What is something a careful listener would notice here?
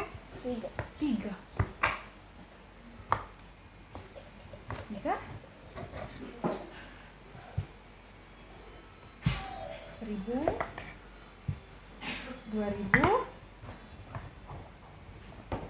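Wooden blocks clack and knock on a table.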